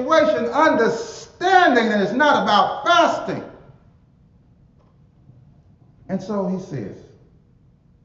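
A man preaches with fervour through a microphone in a reverberant hall.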